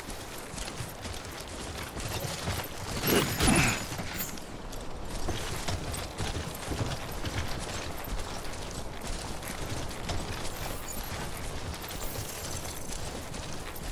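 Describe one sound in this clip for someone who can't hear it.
Footsteps crunch over grass and rocky ground.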